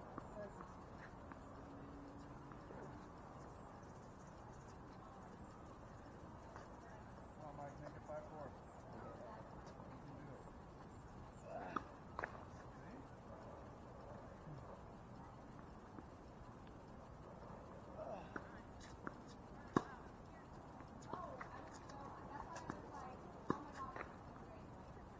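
Tennis balls are struck with a sharp pop from rackets.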